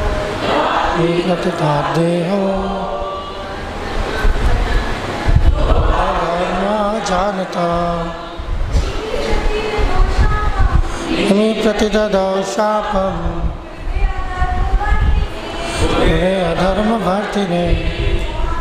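A man sings a slow melody into a microphone, heard through loudspeakers.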